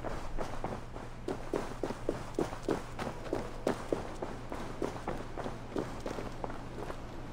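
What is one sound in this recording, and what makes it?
Footsteps thud steadily on stone.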